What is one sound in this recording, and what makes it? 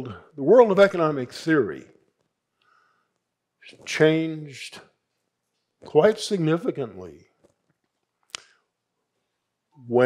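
An elderly man speaks slowly and deliberately through a microphone, with pauses.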